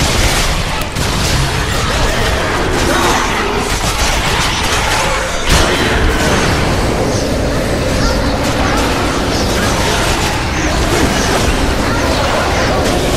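Fire roars steadily.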